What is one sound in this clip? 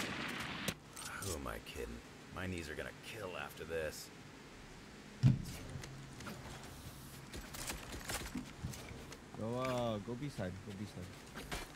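A young man speaks casually into a close microphone.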